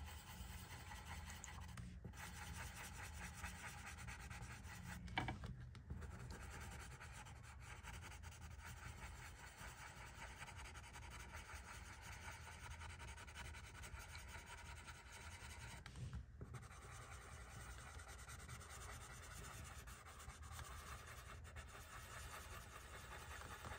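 A coloured pencil scratches softly across paper.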